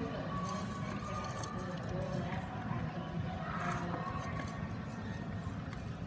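Coarse salt pours and rustles through a funnel into a glass bottle.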